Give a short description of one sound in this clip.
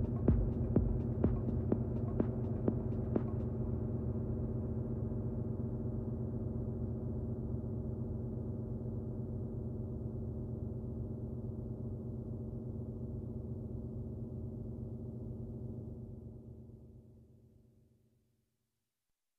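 Electronic dance music with a deep bass plays loudly through speakers and fades out.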